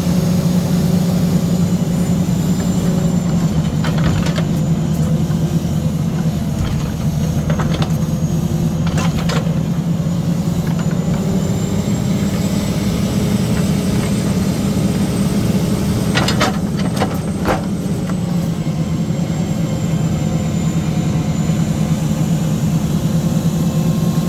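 A hydraulic pump whines as a loader's grapple moves.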